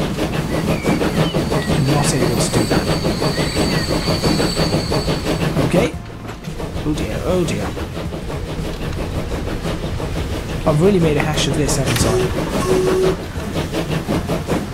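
A steam locomotive chuffs in a quick, steady rhythm.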